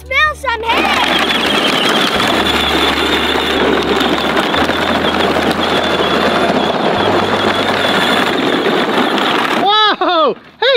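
A toy tractor's plastic wheels crunch over gravel.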